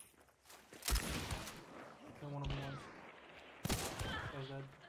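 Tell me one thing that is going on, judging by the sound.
A revolver fires loud, sharp shots.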